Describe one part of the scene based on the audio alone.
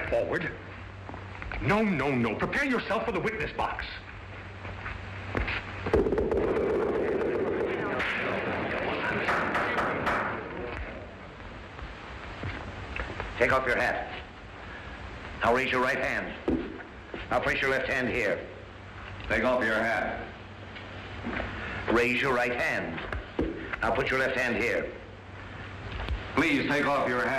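A man speaks sternly.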